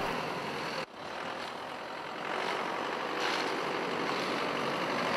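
A pickup truck engine idles outdoors.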